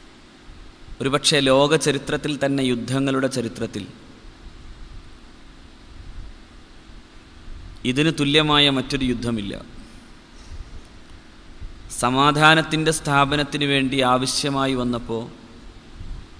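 A man chants in a melodic voice through a microphone, in short phrases with pauses.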